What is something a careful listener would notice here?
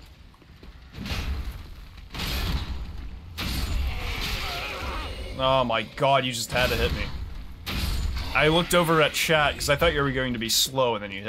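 Weapons clash and clang in a fight.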